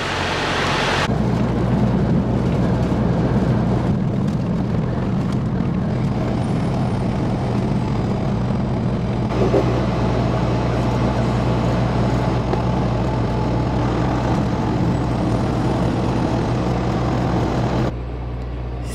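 A truck engine drones steadily from inside the cab.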